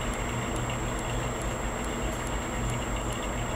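A truck engine rumbles as it drives slowly past.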